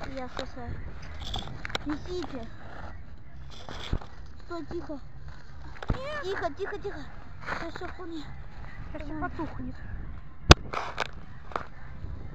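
Children talk to each other close by.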